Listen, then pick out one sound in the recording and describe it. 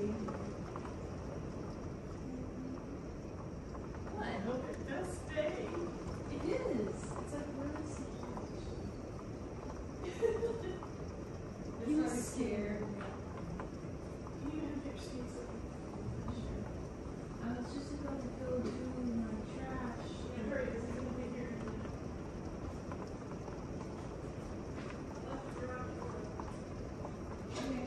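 Rain patters steadily on a window pane.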